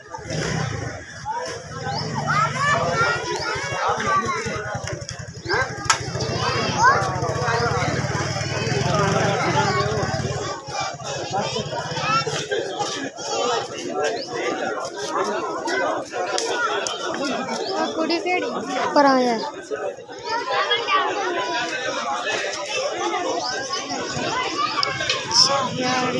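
A crowd of men talks and shouts excitedly outdoors.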